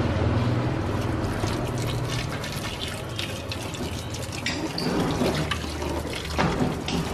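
A hose nozzle knocks against a plastic tub.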